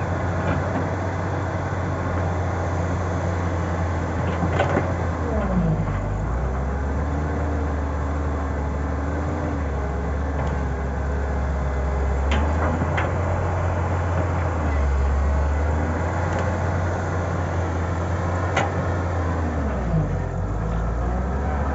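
Hydraulics whine as an excavator's arm swings.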